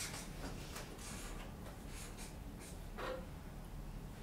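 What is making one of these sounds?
A marker squeaks on a paper board.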